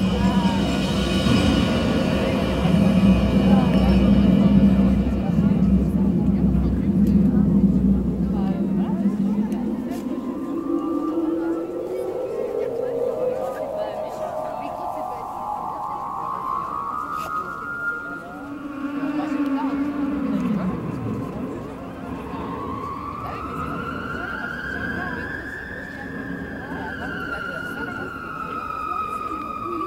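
Electronic music with slow sweeping tones plays loudly over loudspeakers outdoors.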